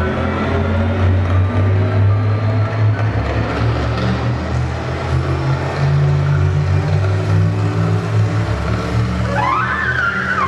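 A cello plays low, sustained notes in a large, echoing hall.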